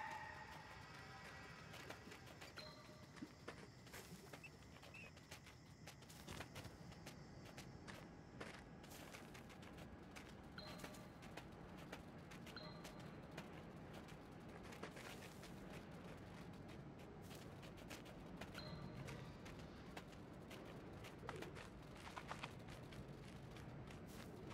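A fox's paws patter quickly over the ground.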